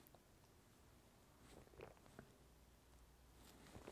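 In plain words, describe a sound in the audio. A man sips a drink.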